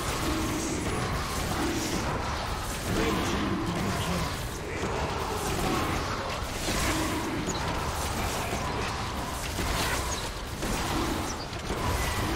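Magic spells crackle and whoosh during a fight between game characters.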